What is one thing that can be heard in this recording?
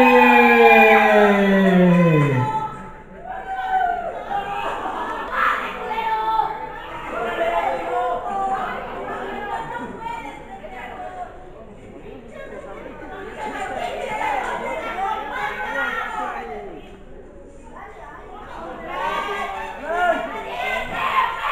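A crowd of men and women shout and cheer in an echoing hall.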